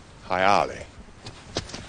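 An elderly man speaks briefly and calmly, close by.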